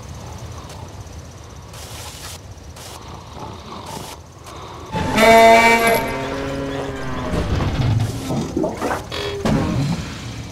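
A truck engine rumbles as it drives over grass.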